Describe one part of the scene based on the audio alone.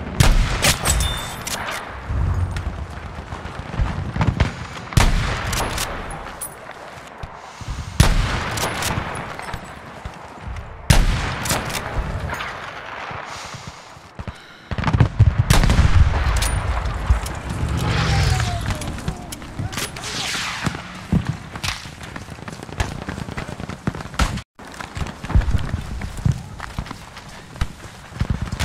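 Distant explosions rumble.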